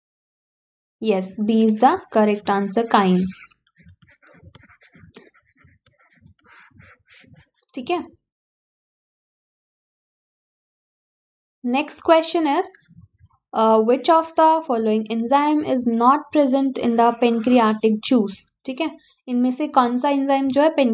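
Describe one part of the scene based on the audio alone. A young woman speaks clearly and calmly into a close microphone, explaining.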